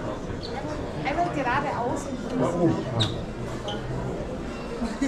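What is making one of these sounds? A young woman speaks brightly close by.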